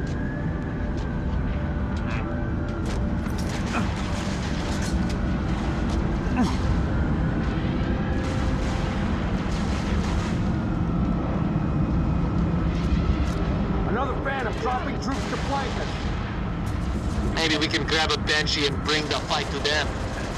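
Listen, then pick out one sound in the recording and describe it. A low game soundtrack rumbles steadily.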